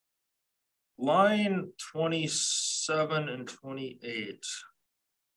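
A man speaks calmly through a microphone, in short phrases.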